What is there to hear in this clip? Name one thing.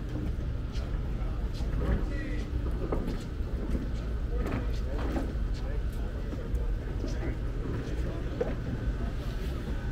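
A group of men talk casually.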